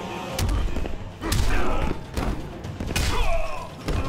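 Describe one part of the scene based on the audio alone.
Fire bursts with a whoosh.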